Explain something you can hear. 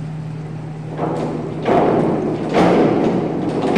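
A diving board thumps and rattles as a diver bounces.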